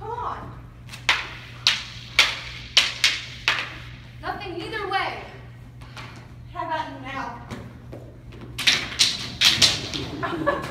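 Wooden sticks clack together in a mock sword fight.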